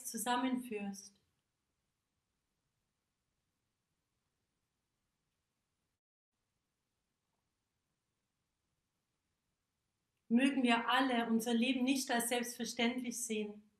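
A woman sings close by, her voice steady and clear.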